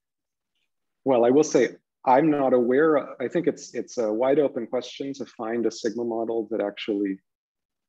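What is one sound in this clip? A man speaks calmly and steadily over an online call.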